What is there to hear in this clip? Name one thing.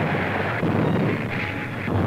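Shells explode in the distance.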